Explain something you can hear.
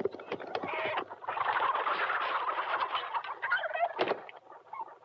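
Chickens squawk and flap their wings.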